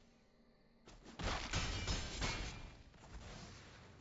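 A game plays a loud crashing attack effect.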